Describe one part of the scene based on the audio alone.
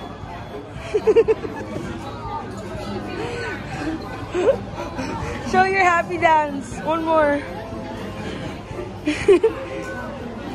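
A young boy laughs and squeals excitedly close by.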